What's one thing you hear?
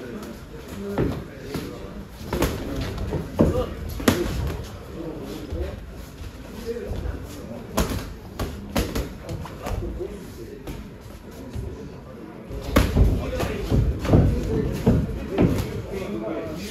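Boxing gloves thud sharply against punch mitts.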